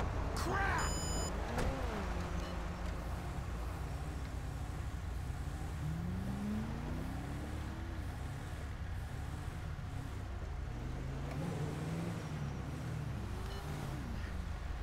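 A car engine revs and hums as the car drives along.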